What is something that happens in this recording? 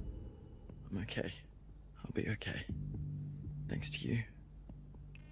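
A young man answers weakly and gratefully.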